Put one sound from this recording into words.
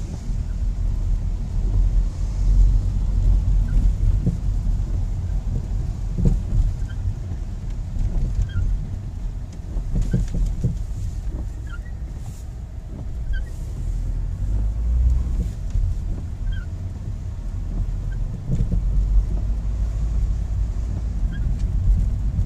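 Windscreen wipers squeak and thump across the glass at regular intervals.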